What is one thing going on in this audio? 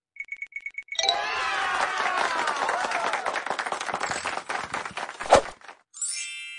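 A sparkling whoosh sweeps along.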